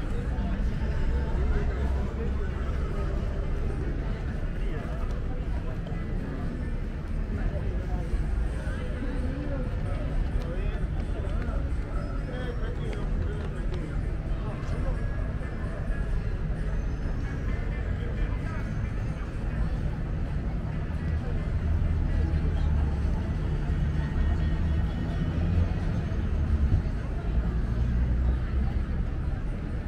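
Men and women chat at a distance in a busy outdoor space.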